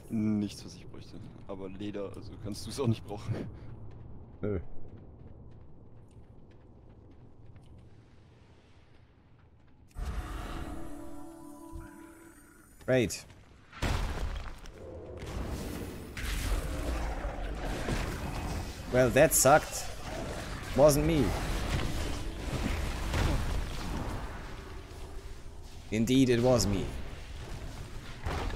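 A man speaks casually, close to a microphone.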